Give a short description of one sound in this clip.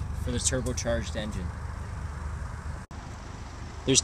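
A car trunk lid clicks open.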